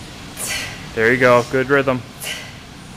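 A young woman grunts briefly nearby.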